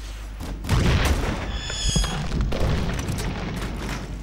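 Debris clatters and crashes down.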